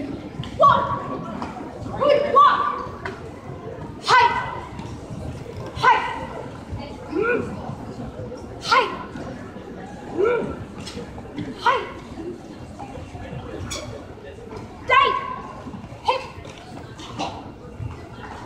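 A young woman shouts sharp short cries in a large echoing hall.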